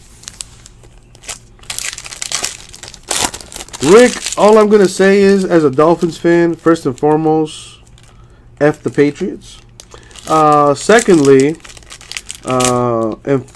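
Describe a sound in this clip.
Foil wrappers crinkle and rustle in hands.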